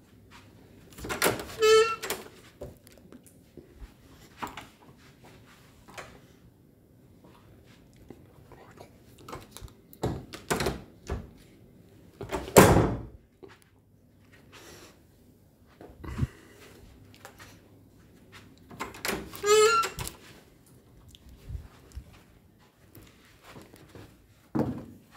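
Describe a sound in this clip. A door handle clicks and rattles.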